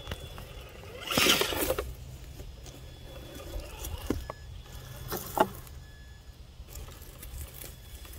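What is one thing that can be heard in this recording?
Dry leaves crunch under small tyres.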